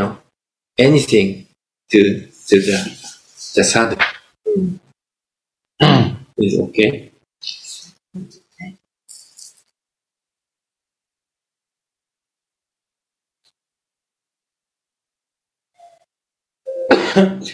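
An elderly man speaks with animation, heard through an online call.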